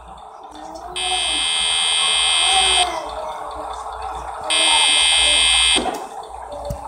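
An electric light buzzes with a steady, harsh hum.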